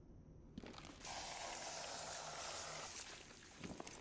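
Gel sprays out with a steady hiss.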